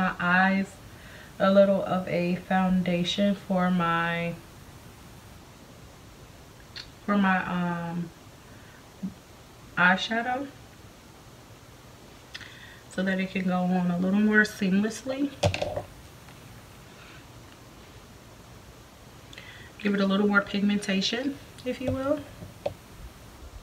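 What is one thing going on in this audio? A young woman talks calmly and close by, in short bursts with pauses.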